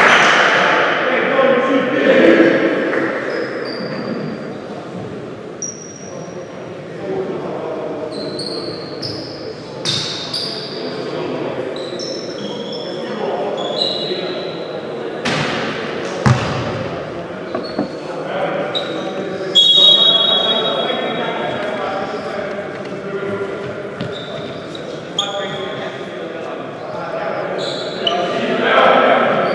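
A crowd murmurs throughout the echoing gym.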